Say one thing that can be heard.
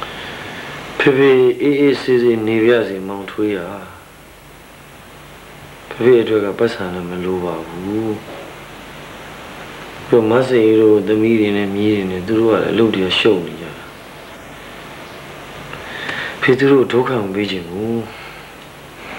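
An elderly man speaks slowly and calmly, close by, in bursts with pauses.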